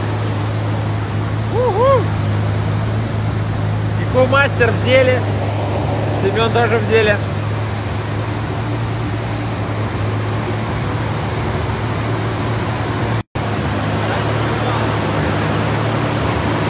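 An engine idles with a steady low hum.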